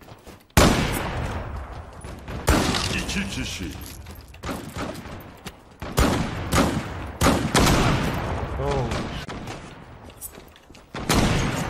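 Loud gunshots crack and echo.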